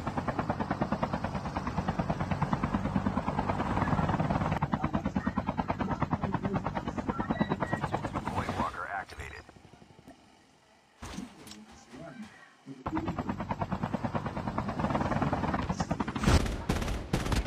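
A small aircraft engine drones with a fast, rattling pulse.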